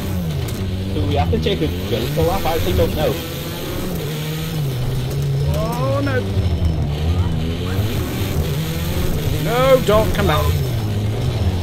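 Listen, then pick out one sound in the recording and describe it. Tyres screech and skid through the corners.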